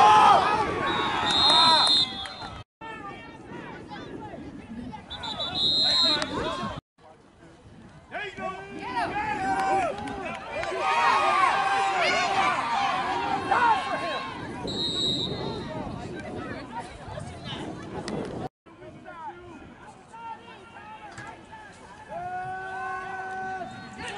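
Men and women shout and cheer from the sidelines outdoors.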